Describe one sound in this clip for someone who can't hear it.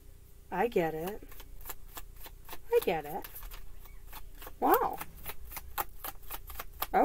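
Playing cards shuffle with quick, soft clicks.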